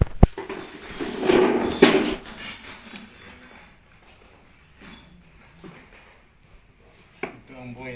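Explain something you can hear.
Cloth rustles as a chair cover is pulled on.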